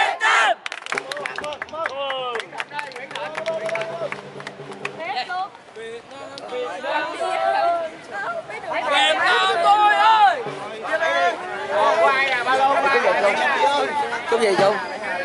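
A crowd of young people chatters and shouts excitedly.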